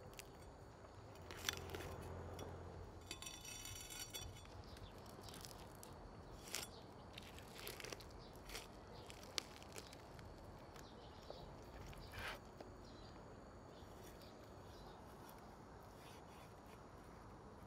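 A knife crunches through crispy roasted skin and meat.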